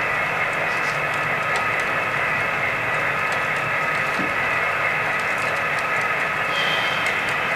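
Small wheels click over rail joints.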